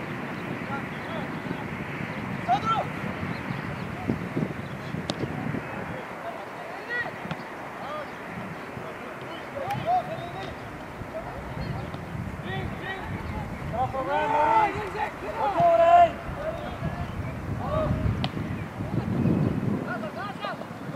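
Teenage boys shout to each other across an open football pitch.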